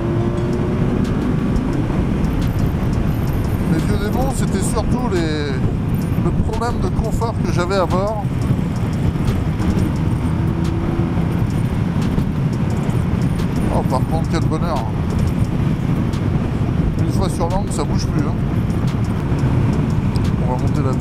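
Wind roars steadily past a fast-moving motorcycle.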